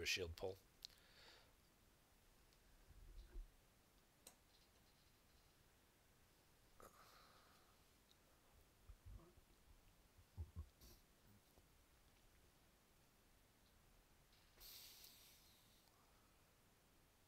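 A man speaks quietly into a nearby microphone.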